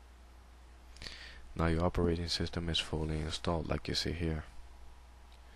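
A computer startup chime plays.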